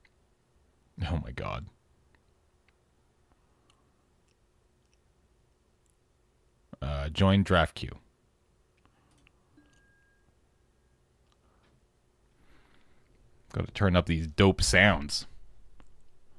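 A young man speaks in short bursts, close to a headset microphone.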